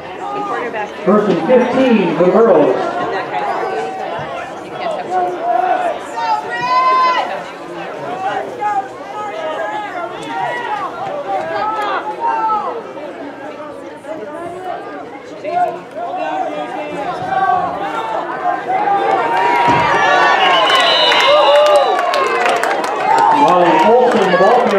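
Young men shout and call out on an outdoor field.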